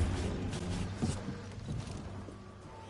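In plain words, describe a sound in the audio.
Footsteps run across a hard metal floor.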